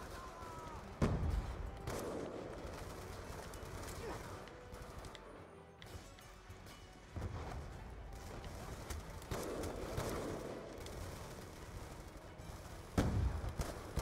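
Rifle shots ring out, each with a sharp crack and a short echo.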